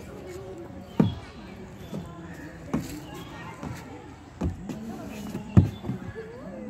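A child's feet thump on a plastic slide.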